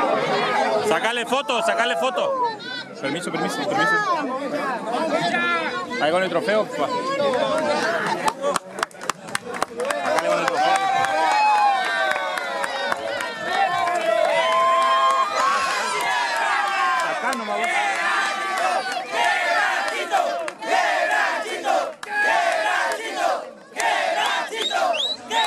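A crowd of men and women shout and cheer loudly close by, outdoors.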